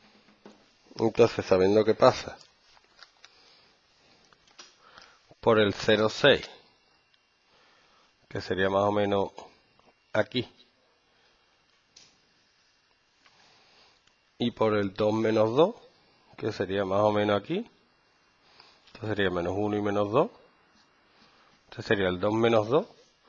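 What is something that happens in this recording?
A man speaks calmly and clearly close by, in short phrases with pauses.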